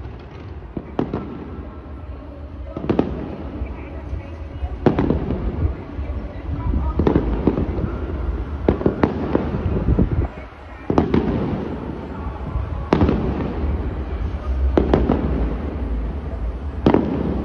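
Fireworks boom and crackle in the distance outdoors.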